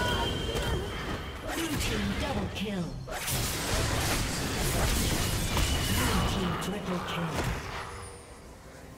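Magic blasts and sword hits crash and whoosh in a busy fight.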